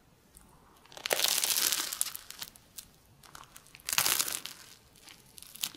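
A young woman bites into crunchy toast close to a microphone, with loud crisp crunches.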